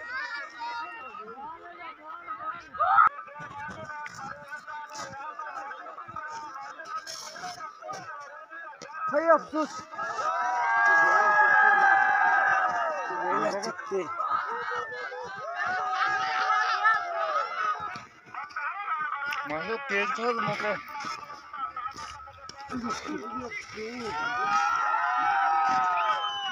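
Several men shout and call out nearby outdoors.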